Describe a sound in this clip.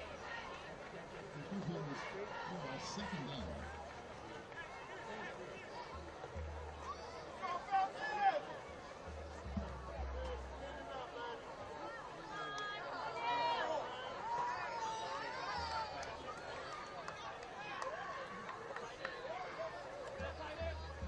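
A large crowd murmurs and cheers from a distance outdoors.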